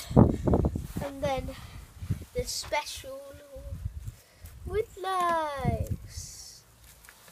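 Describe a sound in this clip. A young boy speaks quietly close by.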